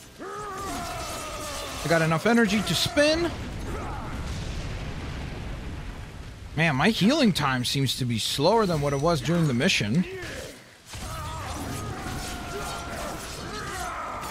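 Blows land with sharp thuds in a fight.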